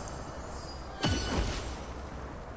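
A heavy thud sounds as a warrior lands on snow.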